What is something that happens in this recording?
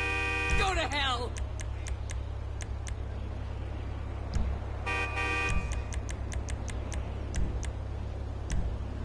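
Short electronic menu clicks tick in quick bursts.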